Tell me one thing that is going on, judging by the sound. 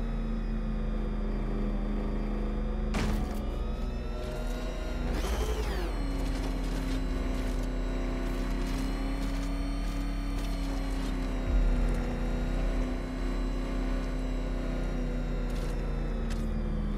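A heavy vehicle's engine hums steadily.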